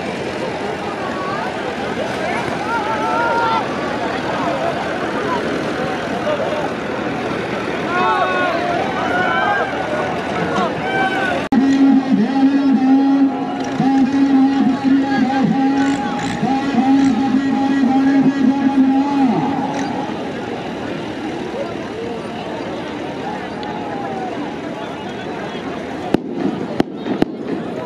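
A large crowd outdoors shouts and cheers loudly.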